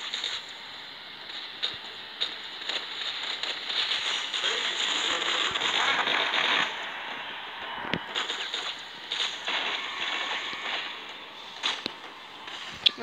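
Rapid gunfire crackles from a video game.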